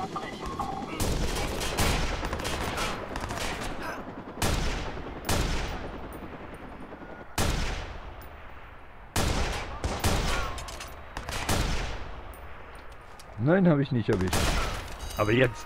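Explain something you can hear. Sniper rifle shots boom one after another, each followed by a long echoing ring.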